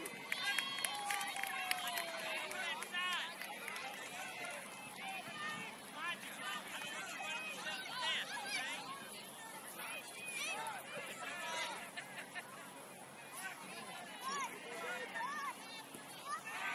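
Young players shout and call out across an open field in the distance.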